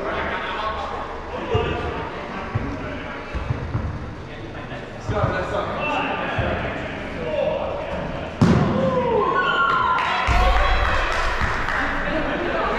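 Young women shout and call out with animation in a large echoing indoor hall.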